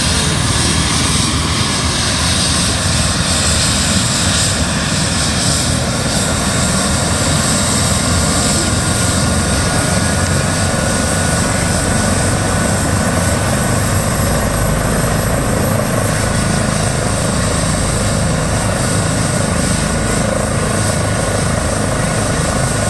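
A helicopter's rotor thumps steadily and loudly nearby.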